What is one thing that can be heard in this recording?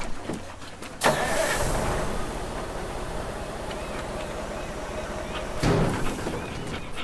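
A heavy crane truck's engine drives.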